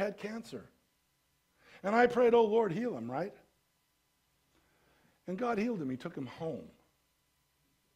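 An elderly man speaks calmly through a microphone, with pauses.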